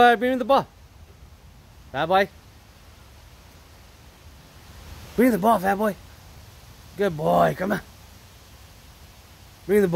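A small dog barks and yelps in short bursts nearby.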